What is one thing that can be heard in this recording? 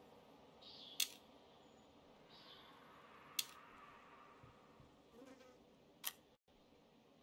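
Short sharp menu clicks sound now and then.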